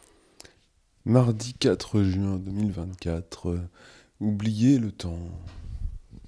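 A man speaks close into a microphone.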